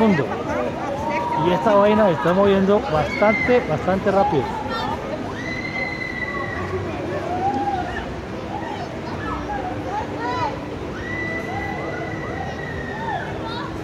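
A carousel's machinery hums steadily as it spins.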